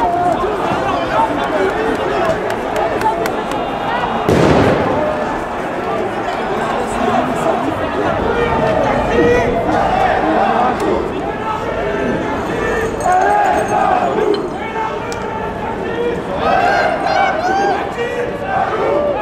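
A crowd of men and women talks and shouts close by, outdoors.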